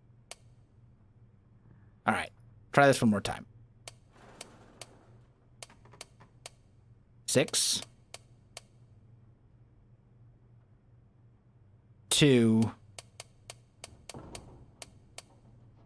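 A safe's combination dial clicks sharply as it turns.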